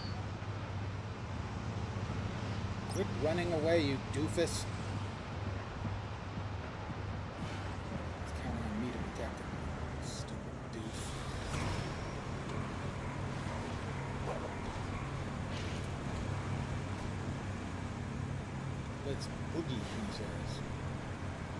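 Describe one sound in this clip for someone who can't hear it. An elderly man talks calmly into a microphone.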